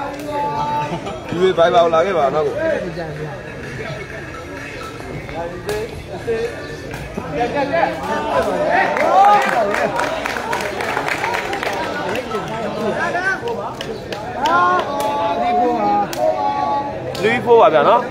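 A large crowd of spectators chatters and cheers outdoors.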